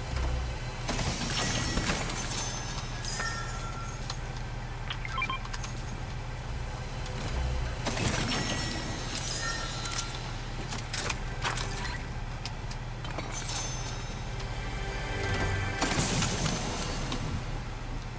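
A chest creaks open with a bright chime.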